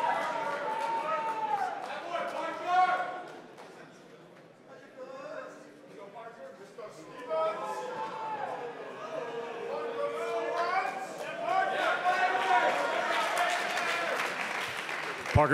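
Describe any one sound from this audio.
A man speaks with animation through loudspeakers in a large echoing hall.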